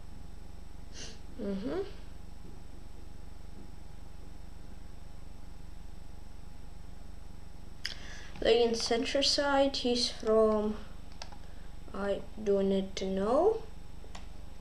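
A boy speaks calmly into a close microphone, in short bursts.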